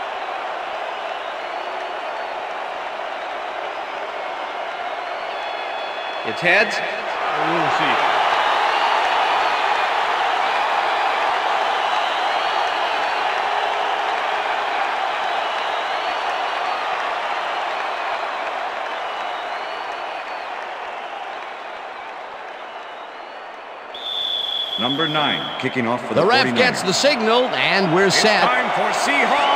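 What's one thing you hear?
A large stadium crowd roars steadily, swelling louder for a while.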